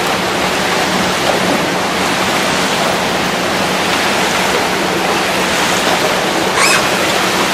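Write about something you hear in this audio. Paddles splash and churn water steadily.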